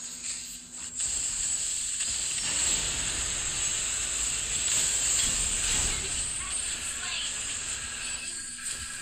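Video game spells and blows crash and whoosh during a fight.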